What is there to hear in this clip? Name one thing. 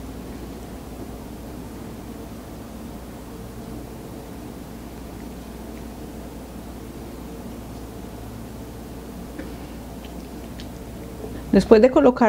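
A wooden spoon scrapes and taps as food is scooped into a dish.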